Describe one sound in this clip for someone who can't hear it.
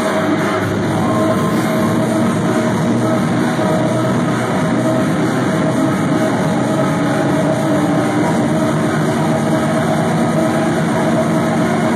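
Loud electronic dance music booms through a large echoing hall.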